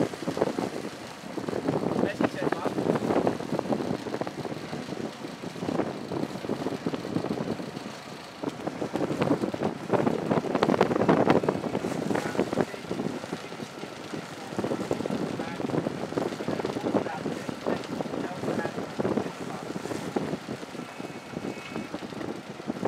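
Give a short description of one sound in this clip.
Wind gusts and buffets loudly outdoors over open water.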